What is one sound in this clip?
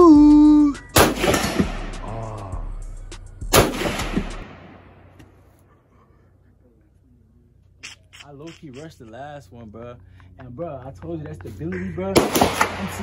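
A rifle fires loud, sharp shots that echo outdoors.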